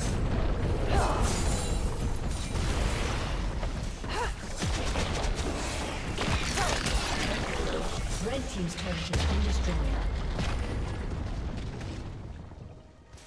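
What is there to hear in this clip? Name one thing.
Video game battle effects whoosh, zap and crash in quick succession.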